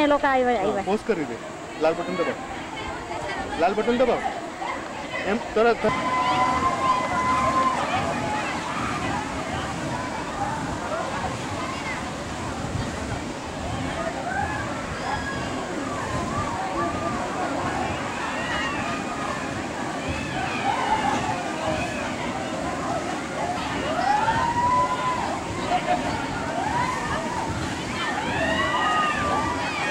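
A crowd shouts and chatters in the water outdoors.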